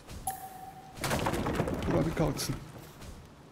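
Wooden building pieces clatter and thud into place.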